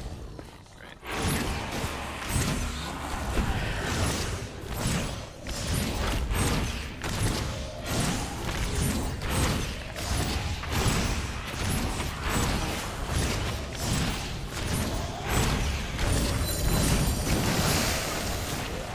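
Weapon blows strike a creature again and again in a quick rhythm.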